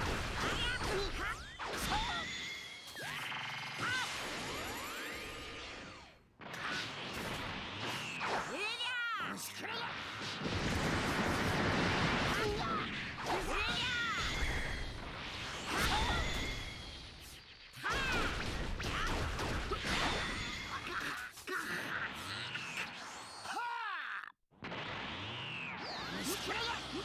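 Loud explosions and punches boom and crack in rapid succession.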